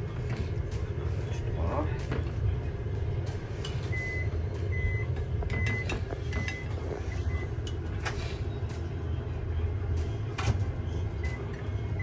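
A spoon spreads a paste onto crisp toasted bread.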